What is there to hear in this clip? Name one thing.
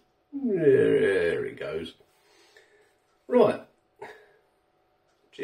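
An older man speaks with animation close to the microphone.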